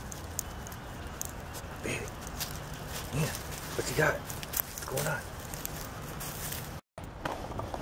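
A dog sniffs and rustles through dry leaves close by.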